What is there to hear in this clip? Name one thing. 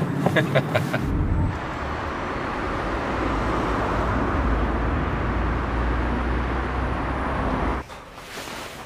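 Cars drive past on a street at night.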